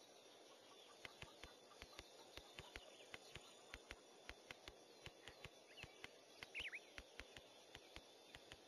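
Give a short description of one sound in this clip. Light footsteps tap in a quick, uneven rhythm.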